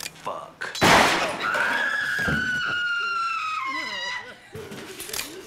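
A young woman screams loudly and long.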